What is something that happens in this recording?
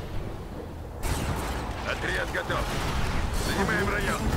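Laser weapons fire in a loud, crackling barrage.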